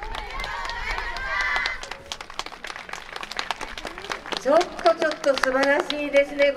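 Many wooden hand clappers clack sharply in quick bursts.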